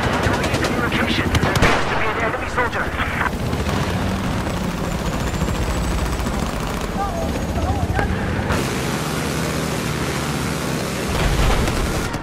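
Heavy waves crash and churn.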